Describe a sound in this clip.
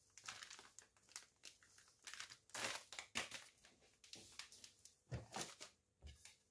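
Breadcrumbs rustle as they are poured from a plastic bag onto a plate.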